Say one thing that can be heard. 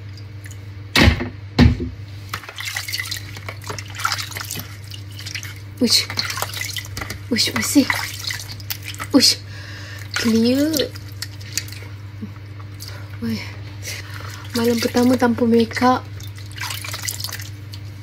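Water splashes and drips into a bowl.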